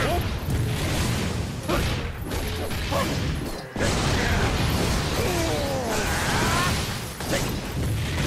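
A staff whooshes and strikes enemies in quick blows.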